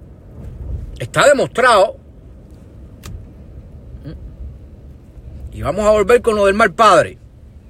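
A middle-aged man speaks close by in short bursts.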